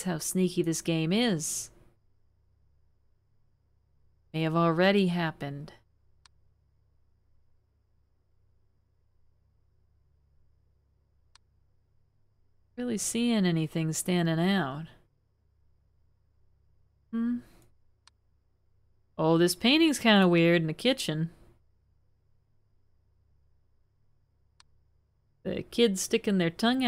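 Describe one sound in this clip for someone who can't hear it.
A woman talks with animation into a microphone.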